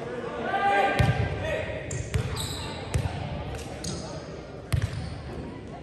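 A volleyball is struck with sharp slaps that echo in a large hall.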